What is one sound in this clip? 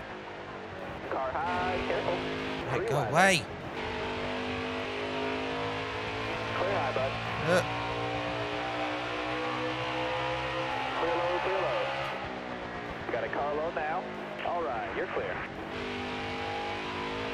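A race car engine roars steadily, shifting pitch with speed.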